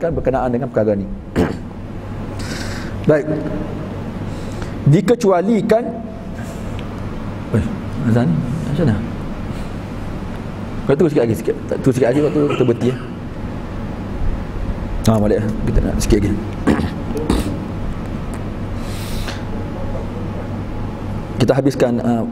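A man speaks calmly into a close microphone, pausing now and then.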